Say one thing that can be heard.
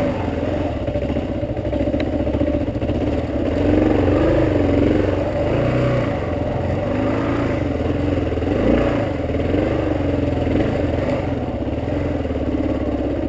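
A motorcycle engine rumbles and revs up and down close by.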